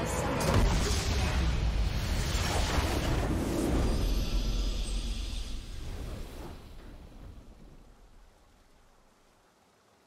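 A triumphant game fanfare swells and then slowly fades out.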